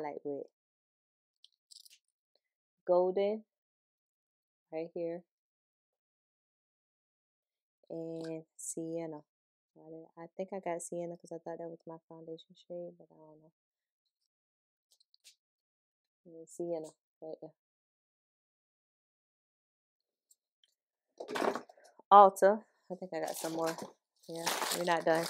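A woman talks calmly and close to a microphone, in short bursts.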